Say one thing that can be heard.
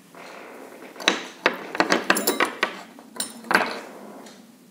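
Small metal objects clatter on a table.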